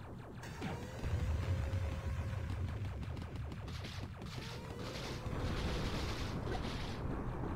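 Explosions boom in the game.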